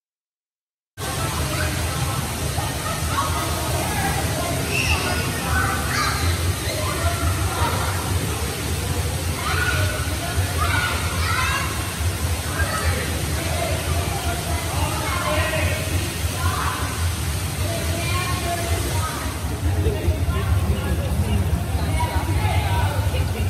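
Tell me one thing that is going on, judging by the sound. Water splashes in an echoing pool hall.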